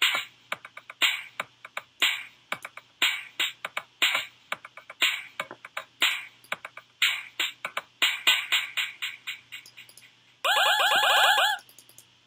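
Bouncy electronic music plays with a steady, quick beat.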